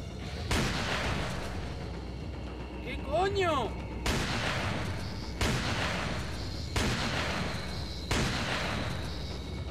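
Shotgun blasts boom loudly, each with a ringing echo.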